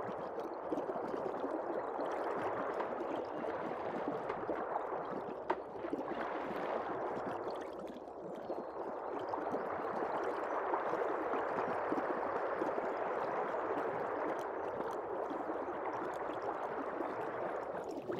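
Water murmurs and burbles steadily, heard from underwater.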